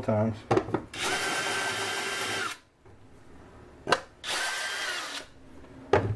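A cordless drill whirs in two short bursts, boring through wood.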